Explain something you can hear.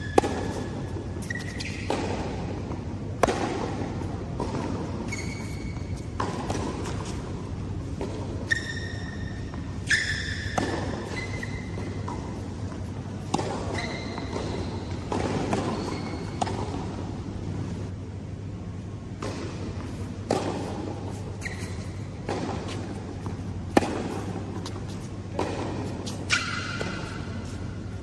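Shoes squeak sharply on a court.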